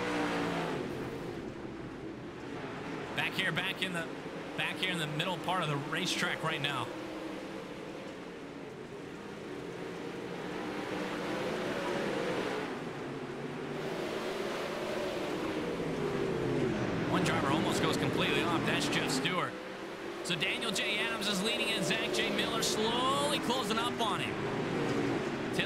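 Racing car engines roar together.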